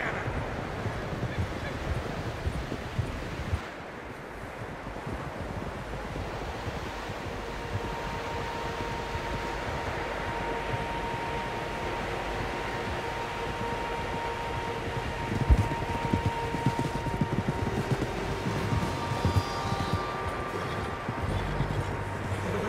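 Horses gallop through deep snow, hooves thudding.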